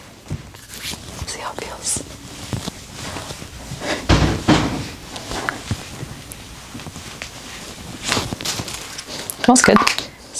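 A young woman talks close by with animation.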